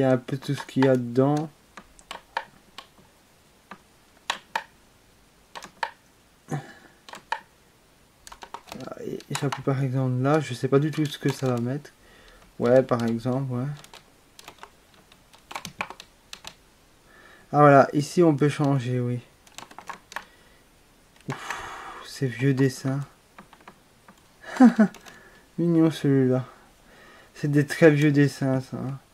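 A plastic button clicks several times.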